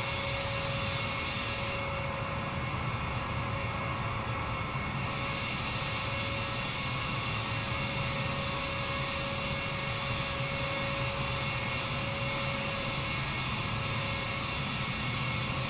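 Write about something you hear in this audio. Jet engines whine and hum steadily as an airliner idles nearby.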